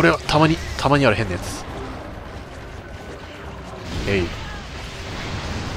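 A heavy blade swings and strikes.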